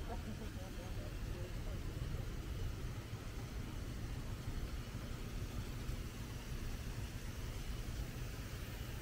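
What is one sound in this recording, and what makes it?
A fountain splashes steadily nearby.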